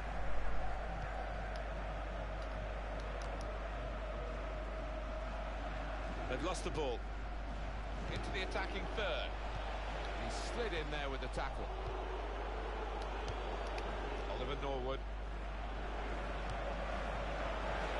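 A large stadium crowd murmurs and roars steadily.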